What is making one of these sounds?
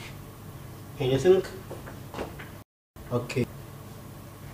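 A man speaks a few short words through a microphone.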